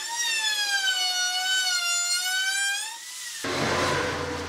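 An electric router whines loudly as it cuts wood.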